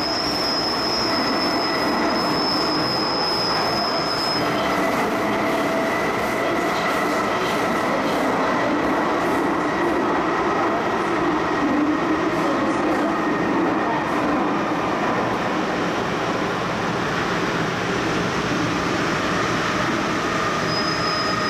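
A train rumbles and rattles along steadily inside its carriage.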